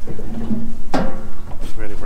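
A knife scrapes on a metal grill.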